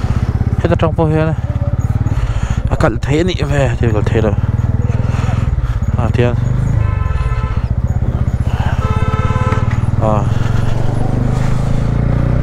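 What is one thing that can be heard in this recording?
A motorcycle engine idles and putters steadily close by.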